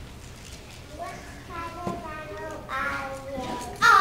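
Young children sing together in an echoing hall.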